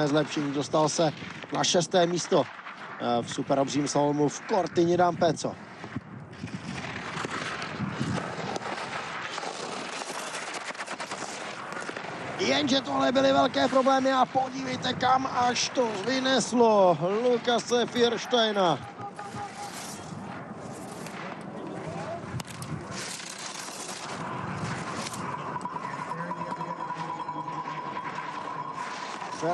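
Skis scrape and hiss over hard snow.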